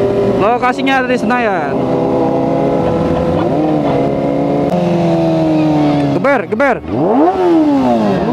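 A motorcycle engine revs up and down loudly close by, rising and falling in pitch.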